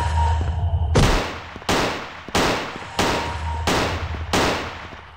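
A gun fires loud shots again and again, each with a fading echo.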